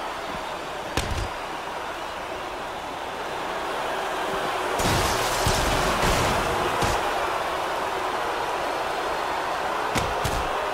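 Heavy blows thud as wrestlers strike each other.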